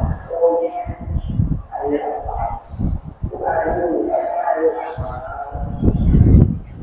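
An elderly man speaks warmly through a loudspeaker.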